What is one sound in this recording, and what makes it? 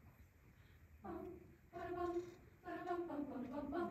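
A large mixed choir sings in harmony in an echoing hall.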